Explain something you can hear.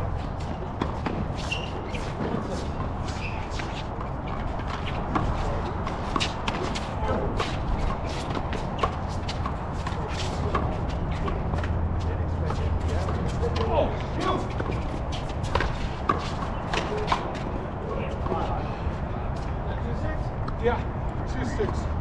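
Rubber soles squeak and scuff on the court.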